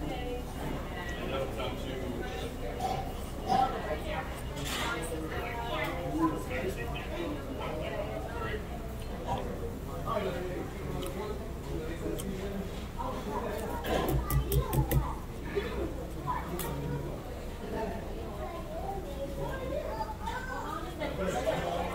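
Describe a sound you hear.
A young man chews food noisily close by.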